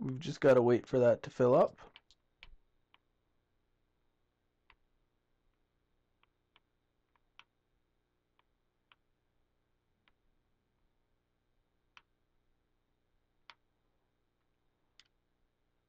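Hands and feet knock softly on wooden ladder rungs, one after another.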